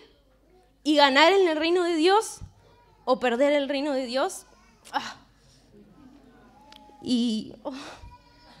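A young girl sings a melody in short phrases.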